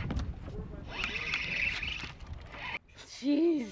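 A fishing reel buzzes as line pulls out.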